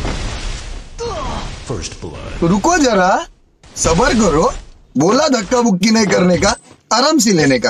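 A man speaks with animation, close to a phone's microphone.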